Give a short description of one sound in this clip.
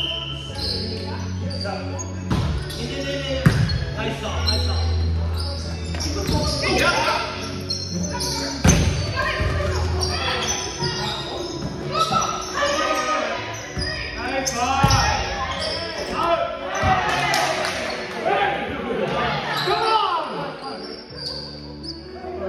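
Young men and women call out and chatter during play.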